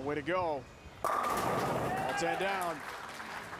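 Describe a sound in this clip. Bowling pins crash and scatter loudly.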